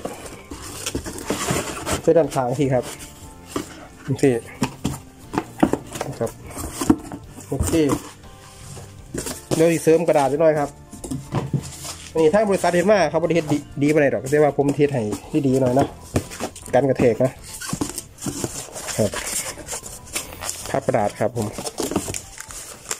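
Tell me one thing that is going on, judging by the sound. Cardboard flaps rustle and scrape as a box is handled.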